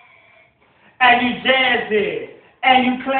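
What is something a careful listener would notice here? A young man sings loudly and close into a microphone.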